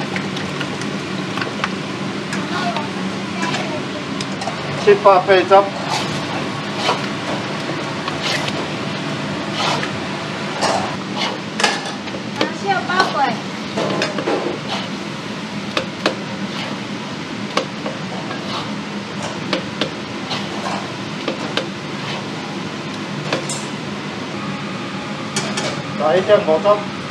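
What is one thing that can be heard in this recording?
Food sizzles softly in a hot pan.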